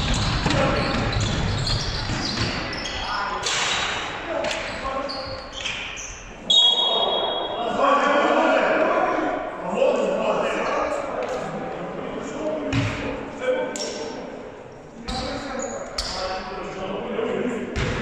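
Players and spectators call out and shout in a large echoing hall.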